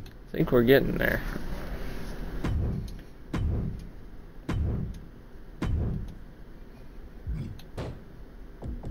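Soft game menu clicks and whooshes sound as selections change.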